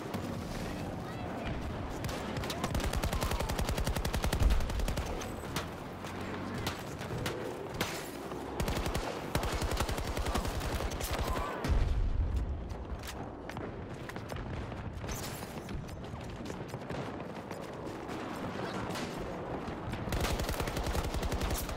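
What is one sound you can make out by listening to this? Automatic rifle gunfire rattles in rapid bursts.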